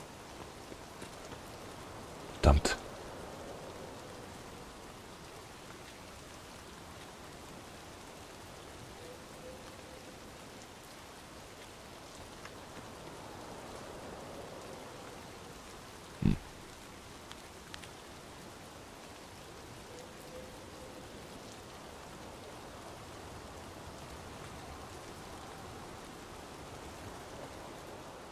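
A young man talks calmly into a microphone.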